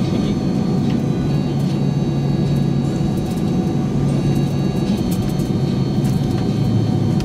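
A jet engine hums steadily as an airliner taxis.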